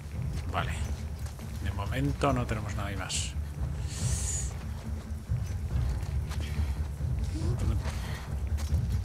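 A young man speaks casually into a close microphone.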